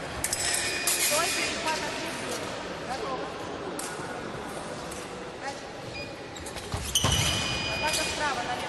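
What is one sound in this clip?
Fencing blades clash and clink.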